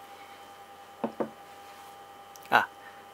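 A mug is set down on a table with a light knock.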